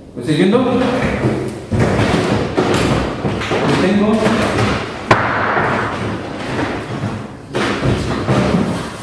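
A man lectures with animation in a large echoing room.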